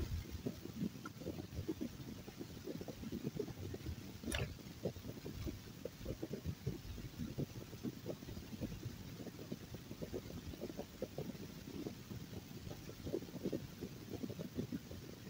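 A car engine hums steadily with a low rumble as it drives.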